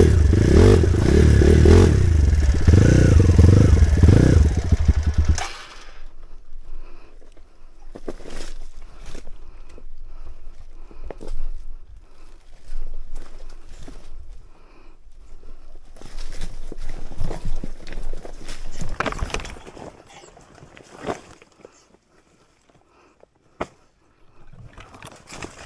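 Tyres crunch and knock over loose rocks.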